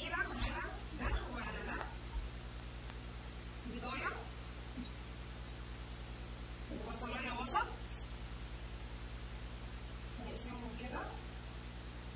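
A woman speaks calmly close by, in short phrases.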